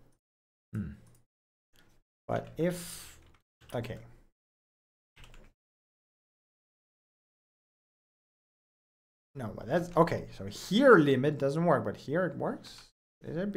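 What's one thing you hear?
A young man speaks casually into a close microphone, in short bursts with pauses.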